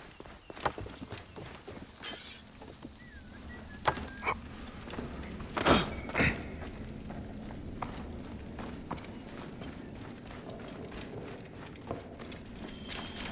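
Footsteps crunch on dirt and straw.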